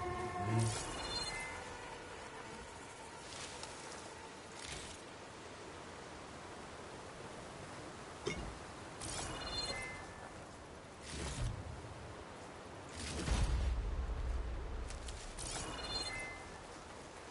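Short chimes ring as items are picked up.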